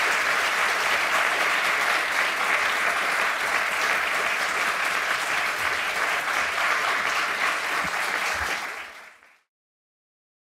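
An audience applauds steadily in a room, then the applause fades out.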